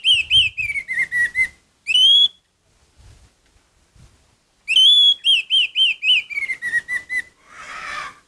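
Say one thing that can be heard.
A songbird sings loud, clear whistling phrases close by.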